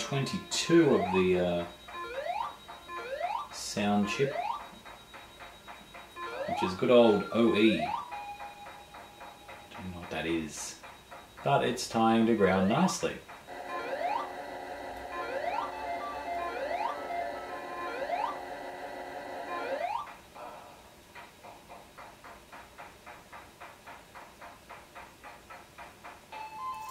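Glitchy video game sounds beep, chirp and buzz from a television speaker.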